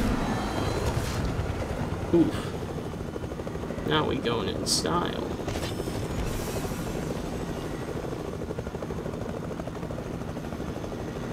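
A helicopter's rotor thumps steadily as it flies.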